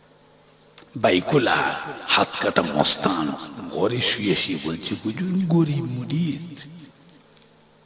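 An elderly man speaks with feeling, close by.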